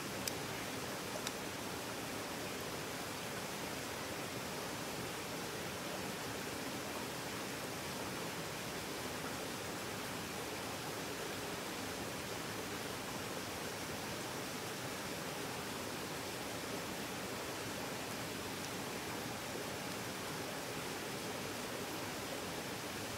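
Water in a stream trickles and rushes steadily nearby.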